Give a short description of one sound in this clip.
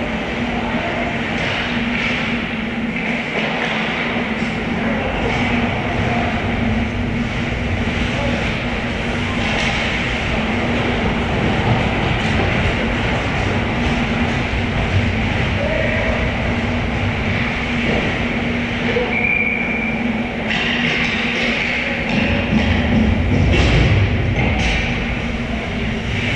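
Skates scrape and hiss on ice in a large echoing rink.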